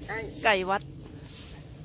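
A rooster crows nearby.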